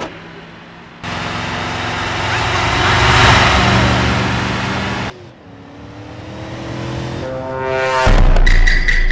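A vehicle engine roars and revs up.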